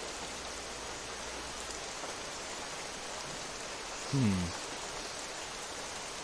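Wind rustles softly through tall trees.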